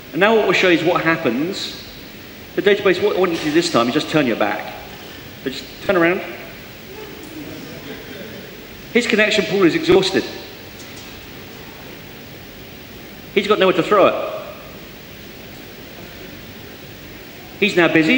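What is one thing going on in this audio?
A man speaks with animation into a microphone, heard through loudspeakers in a large, echoing space.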